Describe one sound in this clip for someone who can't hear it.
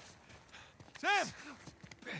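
A man shouts a name.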